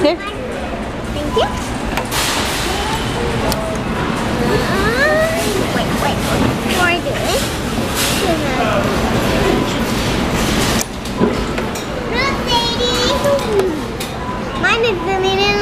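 Young children chatter and squeal close by.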